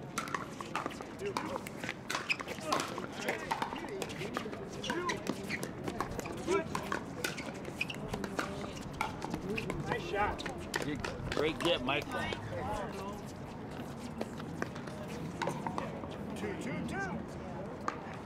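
Plastic paddles pop against a ball in quick rallies outdoors.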